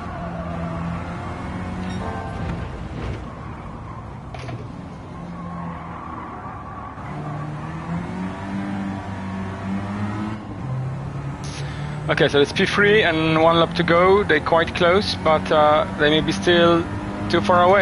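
A car engine hums and revs up and down as gears change.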